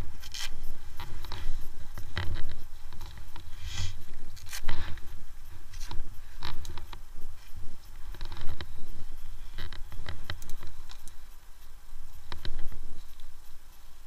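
Footsteps crunch on dry twigs and forest litter.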